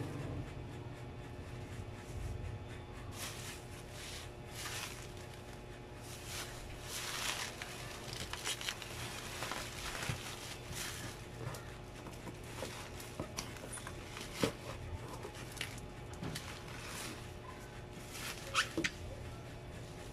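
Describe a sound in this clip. Bubble wrap crinkles and rustles as hands dig through it.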